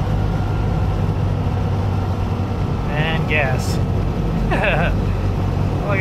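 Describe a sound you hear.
A car engine drones steadily at high speed.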